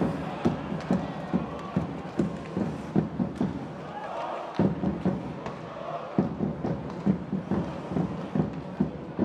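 Hockey sticks clack against a puck and against each other.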